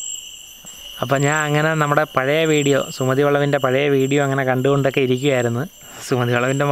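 A young man talks loudly and with animation, close by.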